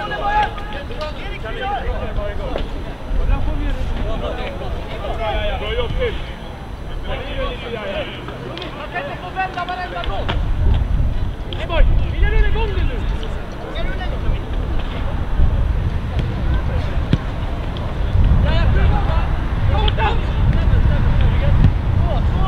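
Players shout to each other across a sports pitch from a distance.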